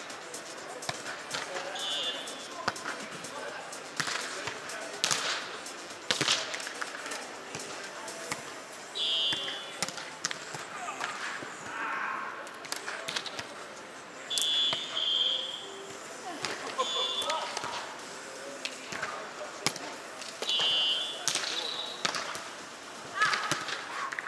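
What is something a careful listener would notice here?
A volleyball is struck with sharp smacks in a large echoing hall.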